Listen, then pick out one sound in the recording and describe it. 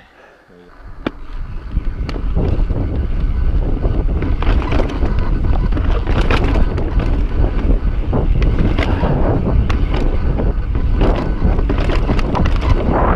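Bike tyres rumble and rattle over rocky ground.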